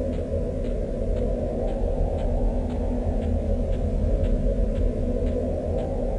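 Footsteps patter steadily on soft ground.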